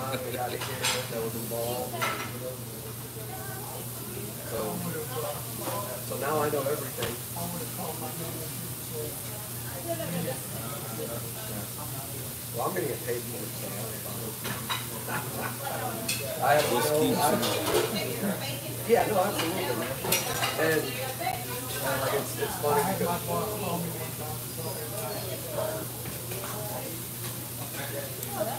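A middle-aged man talks calmly, close to a microphone.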